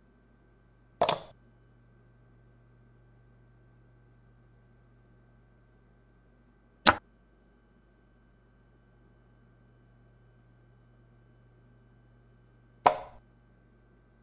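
A chess piece clacks down onto a board a few times.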